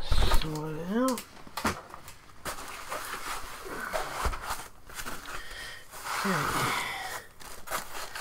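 Foam sheets rustle and squeak as they are handled.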